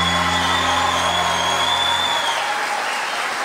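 An orchestra plays with a piano in a large hall.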